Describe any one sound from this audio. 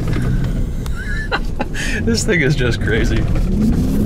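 A man laughs excitedly close by.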